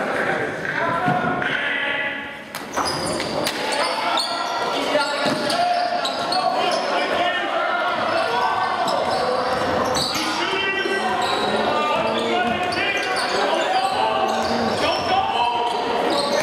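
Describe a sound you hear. A crowd cheers and shouts in a large echoing gym.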